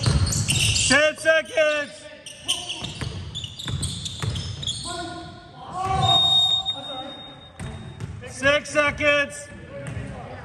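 Sneakers squeak sharply on a wooden floor in an echoing gym.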